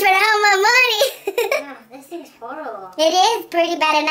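A young woman laughs close by.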